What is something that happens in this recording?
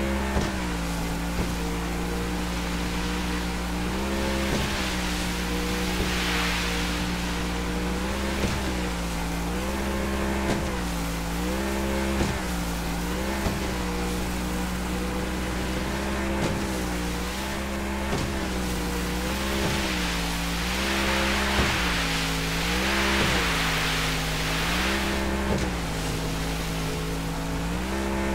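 A speedboat engine roars steadily, its pitch dipping and rising again and again.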